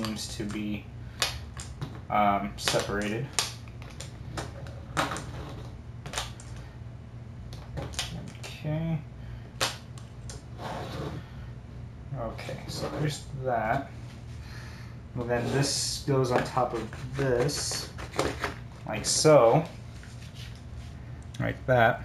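Small pieces click and tap on a tabletop.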